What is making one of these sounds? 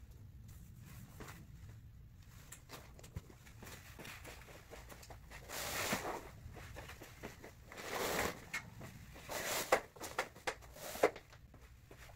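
Nylon tent fabric rustles and crinkles as the tent is adjusted.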